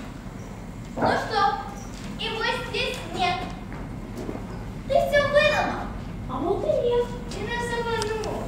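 A boy speaks to another boy in a clear, raised voice.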